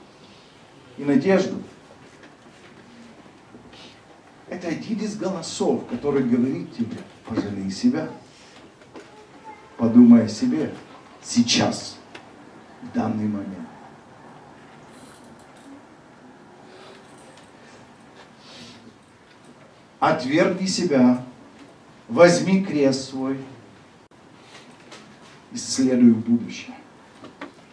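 A man preaches with animation into a microphone in a reverberant hall, pausing between phrases.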